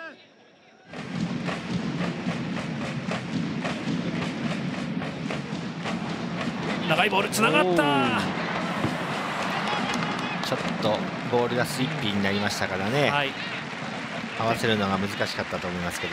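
Drums beat steadily in a stadium crowd.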